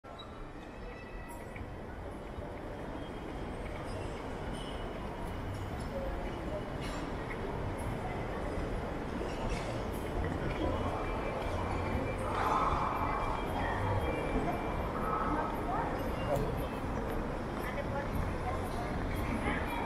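A large echoing hall hums with a steady murmur of distant voices and footsteps.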